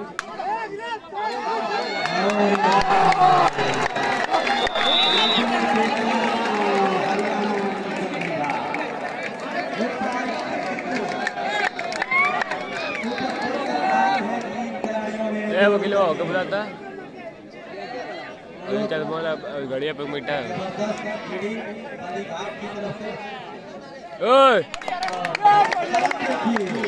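A large outdoor crowd cheers and murmurs.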